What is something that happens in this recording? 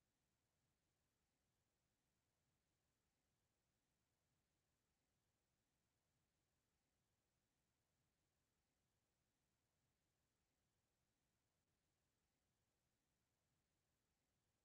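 A clock ticks softly and steadily.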